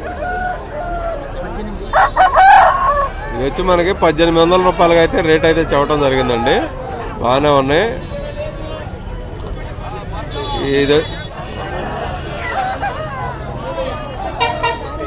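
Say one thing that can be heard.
Men talk and call out in a crowd outdoors.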